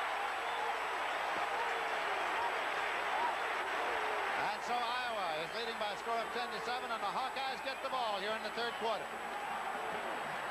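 A large crowd cheers and murmurs in an open stadium.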